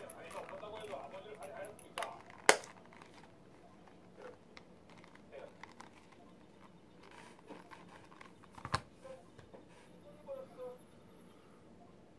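Hands handle a leather wallet, with soft rustling and creaking.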